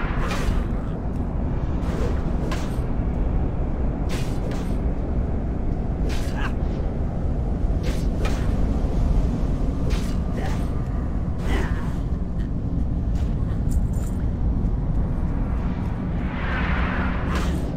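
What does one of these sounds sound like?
Weapon blows land with sharp hits, again and again.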